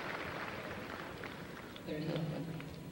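A crowd applauds in a large indoor hall.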